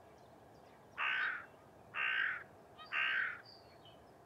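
A goose honks loudly three times, close by.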